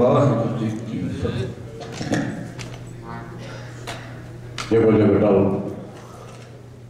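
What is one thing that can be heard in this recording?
Men sing together through microphones in a reverberant hall.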